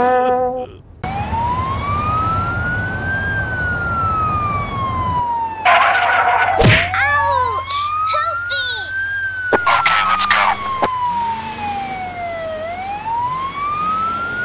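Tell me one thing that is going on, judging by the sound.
An ambulance siren wails, rising and falling slowly.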